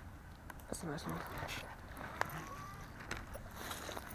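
A baitcasting reel rattles as line is reeled in.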